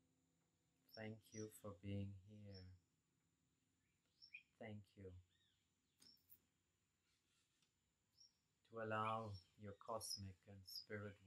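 A middle-aged man speaks calmly and softly, close to the microphone.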